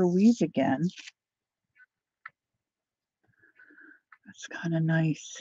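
A sheet of paper peels away with a soft rustle.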